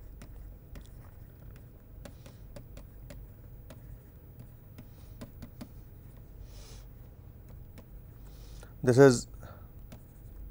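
A pen taps and scratches on a writing tablet.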